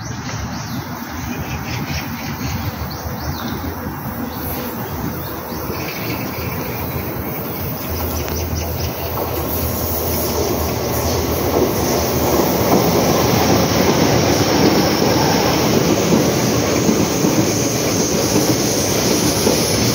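A train rumbles past close by, growing louder.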